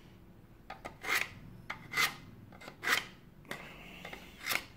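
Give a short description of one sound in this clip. A metal blade scrapes through a small sharpener in short, repeated strokes.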